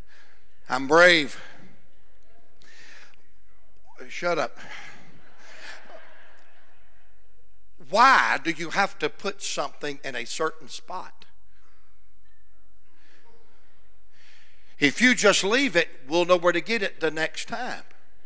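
A man preaches with animation into a microphone in a large echoing hall.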